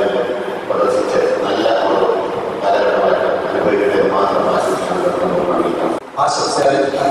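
A middle-aged man speaks into a microphone over a loudspeaker.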